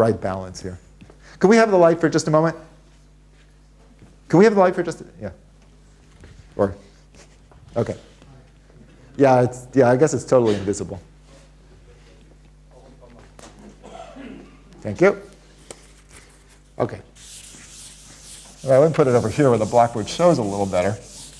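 An elderly man lectures calmly into a microphone.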